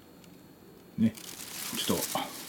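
A plastic sheet rustles and crinkles close by.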